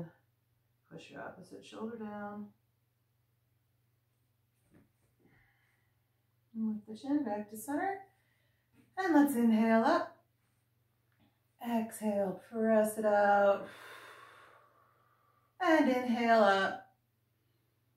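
A woman speaks calmly and gently nearby, in short phrases with pauses.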